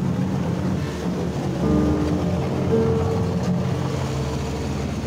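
A skid loader's diesel engine rumbles close by.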